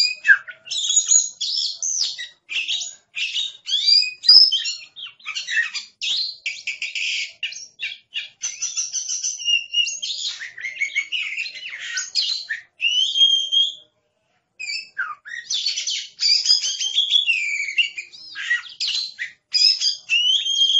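A songbird sings a loud, varied song of whistles and chirps close by.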